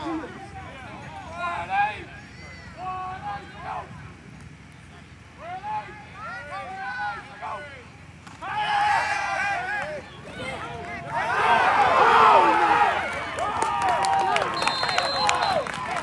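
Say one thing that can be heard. A crowd of spectators shouts and cheers outdoors, growing louder as a play unfolds.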